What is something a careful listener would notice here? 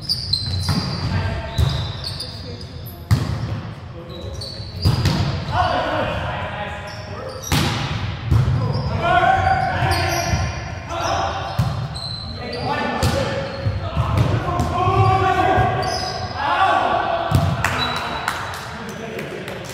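A volleyball is hit with sharp slaps in a large echoing gym.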